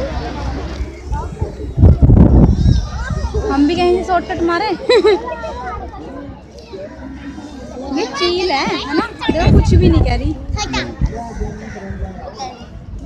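Several young people talk and call out nearby.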